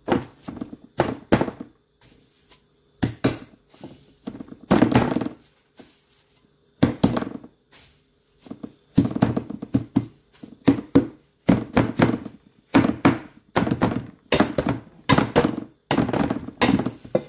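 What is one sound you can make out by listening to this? Plastic wrap crinkles and rustles.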